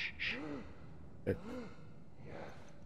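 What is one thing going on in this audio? A man whispers softly to hush someone.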